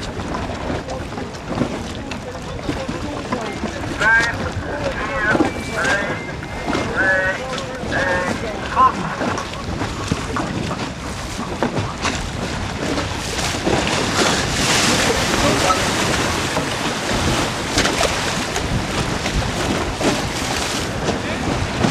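Wind blows hard outdoors.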